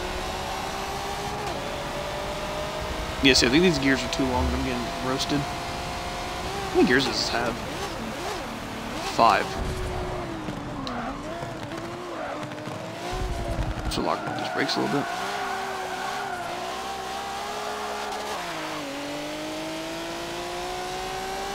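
A racing car engine roars steadily, its pitch rising and falling as it shifts gears.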